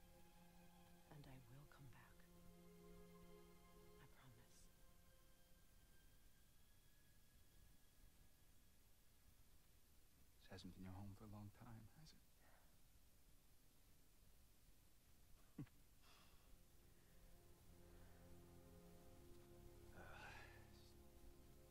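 A man speaks softly and earnestly, close by.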